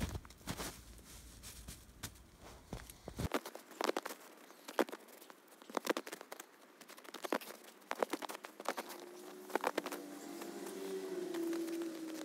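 Snow is packed and thumped by hand.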